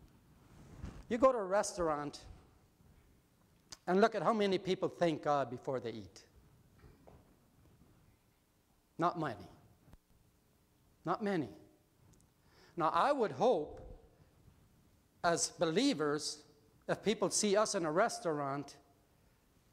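An elderly man speaks calmly through a microphone, pausing between phrases.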